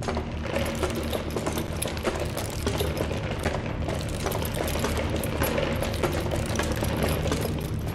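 Quick light footsteps patter across a hard floor.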